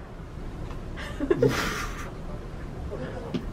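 A middle-aged man coughs close to a microphone.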